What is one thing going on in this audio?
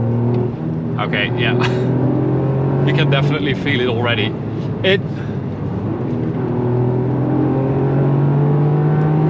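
A car engine hums steadily from inside the cabin, its pitch rising toward the end.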